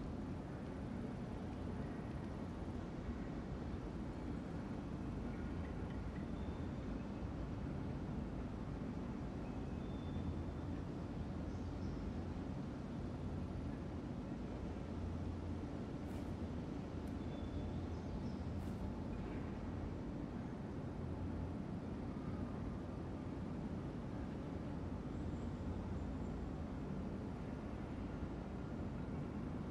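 A ceiling fan hums steadily.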